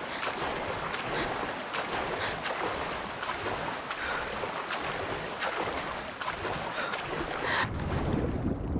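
Water splashes as a swimmer strokes across a river.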